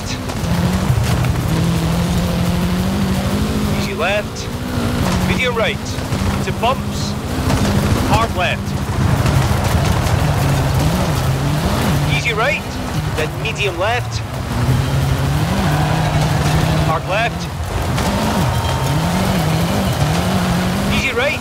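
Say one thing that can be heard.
A rally car engine roars and shifts gears at high revs.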